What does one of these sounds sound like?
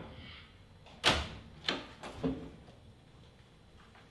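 A wooden door clicks and swings open.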